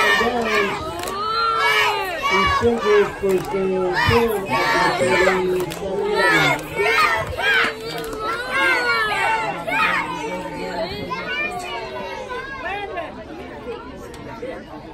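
Young players shout and cheer loudly close by, outdoors.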